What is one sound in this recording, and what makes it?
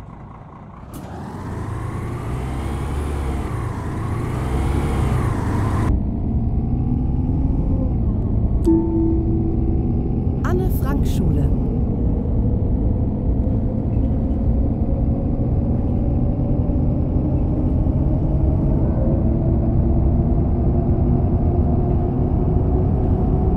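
A bus engine hums and rises in pitch as the bus pulls away.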